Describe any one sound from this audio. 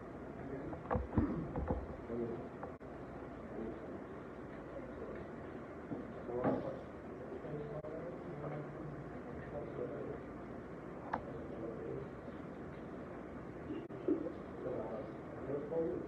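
A man talks with young people nearby.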